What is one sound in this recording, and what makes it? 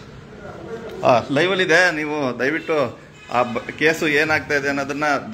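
A man speaks calmly from a short distance indoors.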